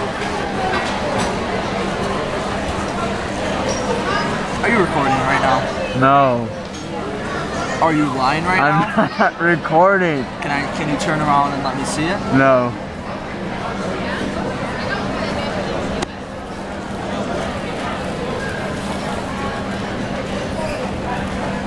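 A crowd chatters in the background of a large busy room.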